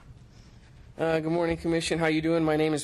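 A man speaks calmly through a microphone, heard over loudspeakers in a large room.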